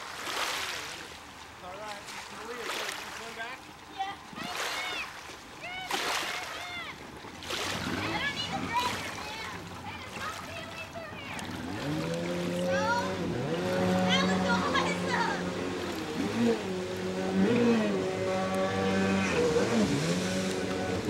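Water laps and splashes.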